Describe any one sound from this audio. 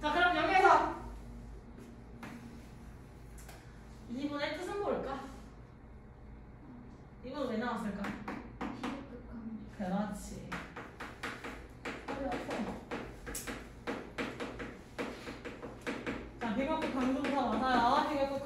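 A young woman speaks in a lecturing tone.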